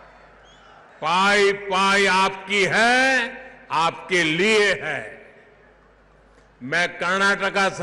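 An elderly man speaks forcefully into a microphone over loudspeakers.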